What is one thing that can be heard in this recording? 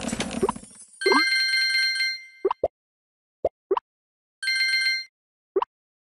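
Bright game chimes jingle in short bursts.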